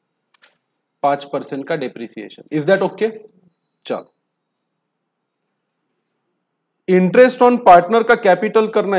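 A man speaks calmly and explains into a close microphone.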